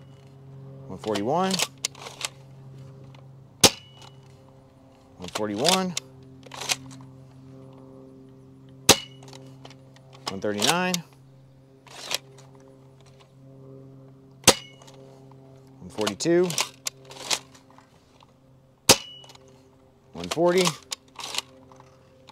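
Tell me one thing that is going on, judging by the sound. A toy foam blaster's slide is pulled back with a rattling, springy whir.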